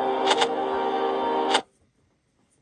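Music plays loudly from a tablet speaker and then cuts off abruptly.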